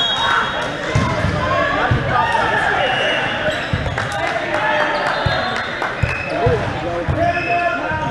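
Men call out and chatter in a large echoing gym.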